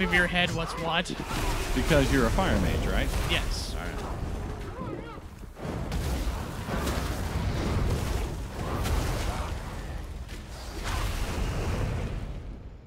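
Magic blasts and weapon blows clash in a fight.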